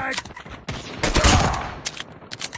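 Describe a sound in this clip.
A pistol fires sharp gunshots.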